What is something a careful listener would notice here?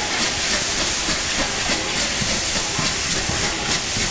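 Steam hisses loudly from a locomotive.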